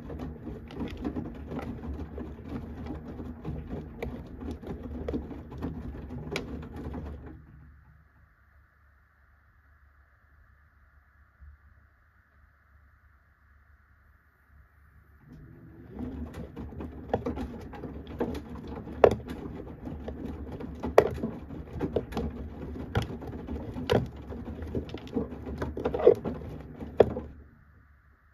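A washing machine drum turns, tumbling wet laundry with sloshing and soft thumps.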